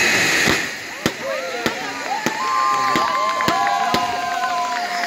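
Fireworks crackle and pop.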